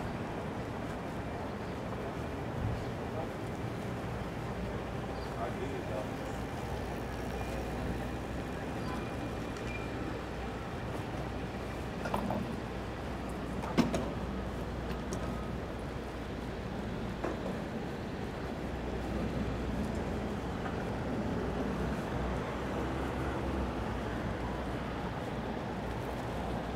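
Distant city traffic hums steadily outdoors.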